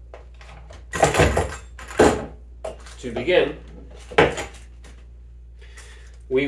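Metal parts clink and rattle as a man handles them.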